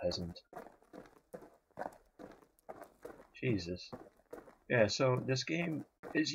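Footsteps crunch over dry grass at a steady walking pace.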